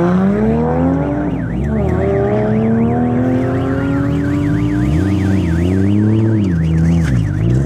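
A car engine idles loudly and revs up and down close by.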